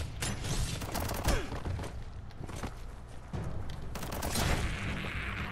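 Heavy blows strike with loud thuds.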